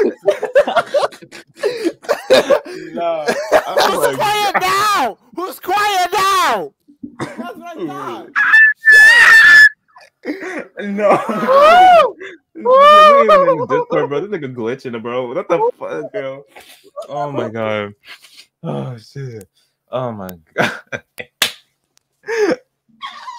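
Several young men laugh and shout over an online call.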